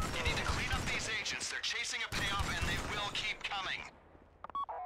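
A rifle fires bursts of gunshots.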